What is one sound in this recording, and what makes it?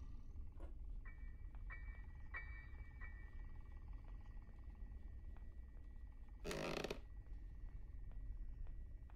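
Footsteps thud slowly on wooden floorboards.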